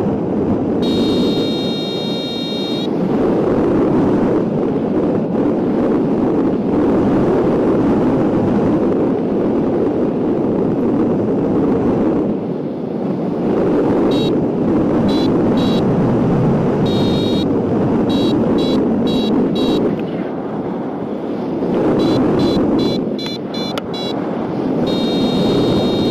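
Wind roars steadily past a microphone in flight.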